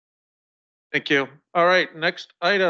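A second man speaks loudly and close to a microphone.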